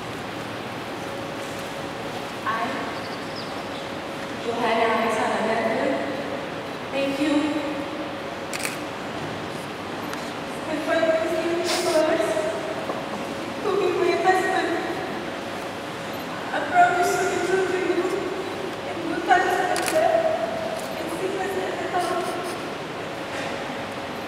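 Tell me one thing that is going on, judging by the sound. A young man speaks slowly into a microphone.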